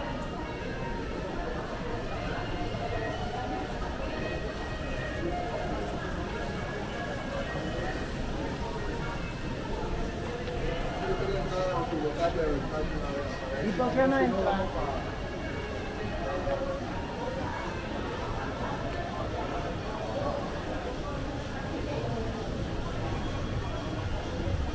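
Distant voices of a crowd murmur in a large echoing hall.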